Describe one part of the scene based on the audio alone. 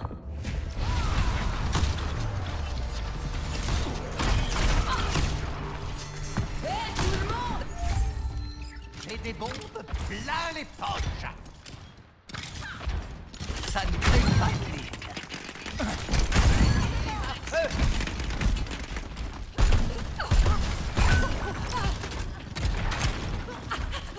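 Rapid gunfire and energy blasts crackle and boom in a video game battle.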